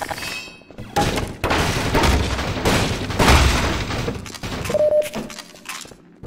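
A crowbar smashes wooden crates, which splinter and crack.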